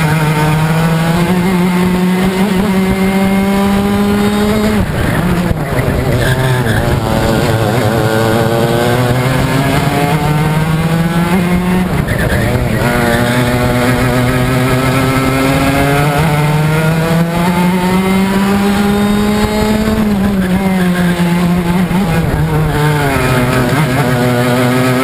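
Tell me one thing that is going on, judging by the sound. A go-kart engine buzzes loudly up close, rising and falling in pitch as it speeds up and slows for corners.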